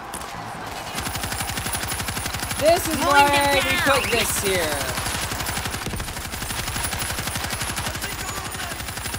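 A heavy machine gun fires a fast, steady burst.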